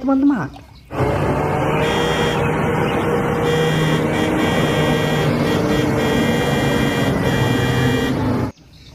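A large truck engine roars steadily nearby.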